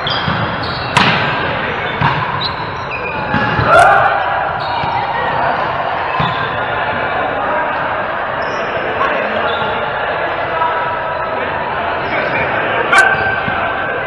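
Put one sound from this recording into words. A volleyball is struck with a sharp slap in a large echoing hall.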